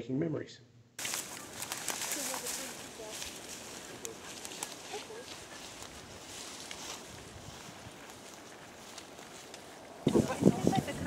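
Footsteps crunch through dry grass outdoors.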